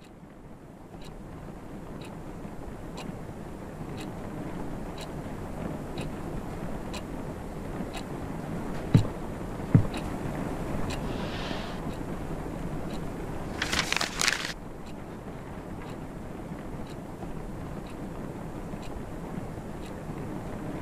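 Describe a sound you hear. A wall clock ticks steadily.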